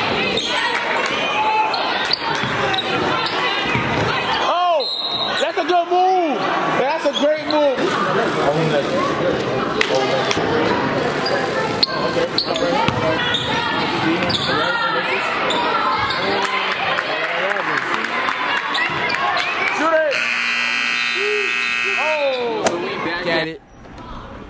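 A crowd cheers and murmurs in a large echoing gym.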